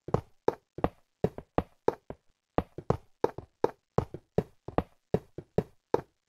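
A minecart clatters in rhythmic clicks along a rail track.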